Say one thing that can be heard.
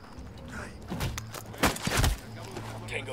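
Heavy blows thud in a short, close struggle.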